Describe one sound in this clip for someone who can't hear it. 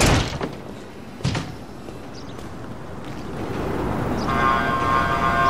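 Footsteps tread on pavement.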